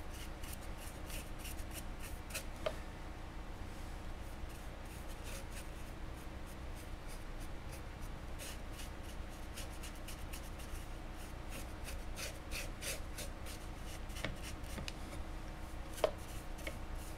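A paintbrush lightly dabs and scrapes against a metal surface.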